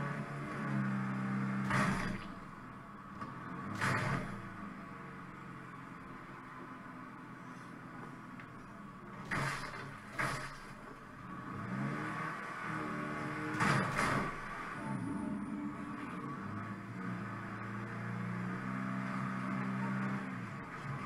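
A car engine hums and revs as a vehicle drives along a road.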